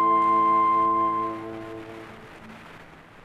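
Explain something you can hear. A flute, harp and horn end a piece with a held chord that rings out in an echoing hall.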